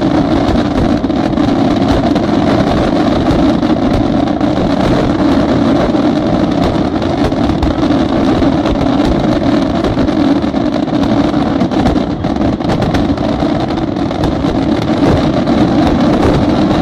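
Fireworks boom and crackle rapidly and without pause.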